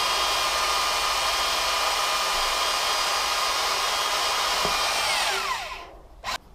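A spray can hisses steadily, then stops.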